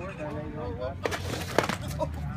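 A skateboard clatters on the pavement.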